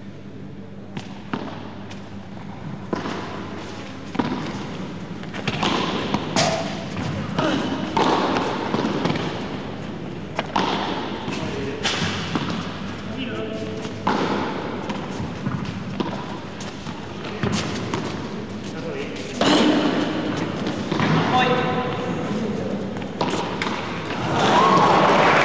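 A ball bounces off the court and glass walls.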